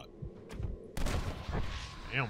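A rifle shot cracks with a short echo.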